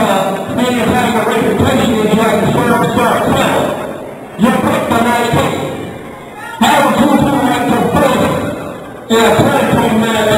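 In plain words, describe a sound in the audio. A man shouts loudly in a large echoing hall.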